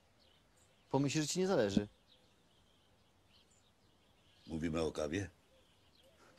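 A younger man speaks briefly, close by.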